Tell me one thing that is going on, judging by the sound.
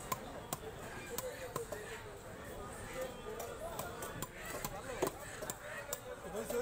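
A knife scrapes scales off a fish with quick, sharp rasps.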